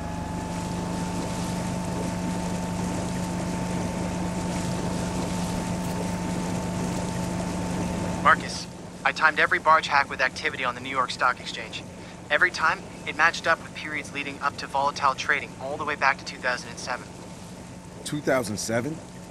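Water splashes against a fast-moving boat hull.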